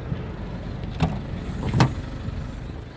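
A car's rear hatch unlatches with a sharp click and swings open with a thud.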